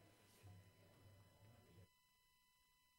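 Several men talk and murmur in a room.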